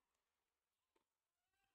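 A racket strikes a tennis ball with a sharp pop.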